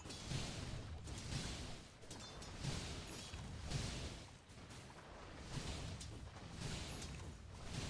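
Blows and spell effects clash in a fantasy battle.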